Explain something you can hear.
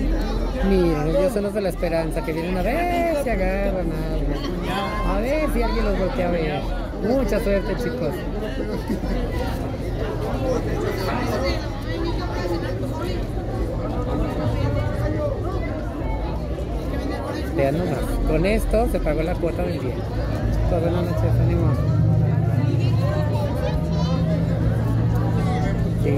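A crowd of men and women chatter nearby, outdoors in a busy street.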